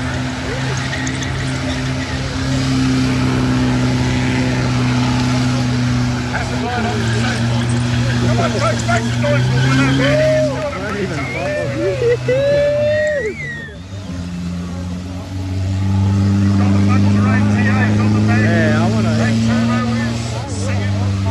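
A truck engine roars loudly, rising and falling as it revs.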